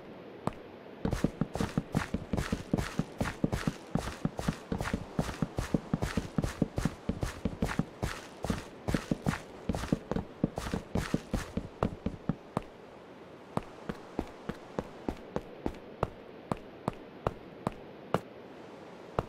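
Seeds are planted in soil with quick, repeated soft thuds.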